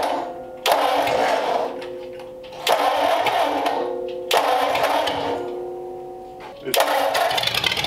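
An engine starter cranks in several short bursts.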